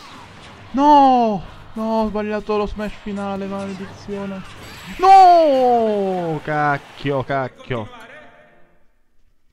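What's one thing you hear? Game fighters clash with sharp hits and whooshing blasts.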